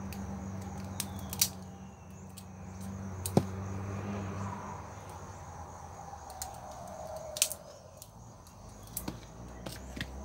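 Scissors snip through plant stems.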